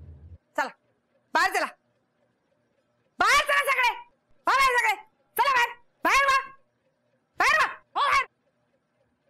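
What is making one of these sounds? A middle-aged woman shouts angrily and loudly, close by.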